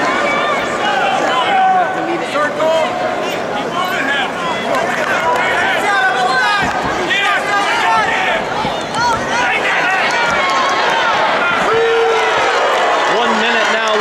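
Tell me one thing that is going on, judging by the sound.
A large crowd cheers and shouts throughout a big echoing arena.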